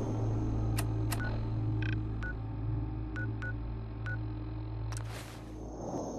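Soft electronic clicks tick several times.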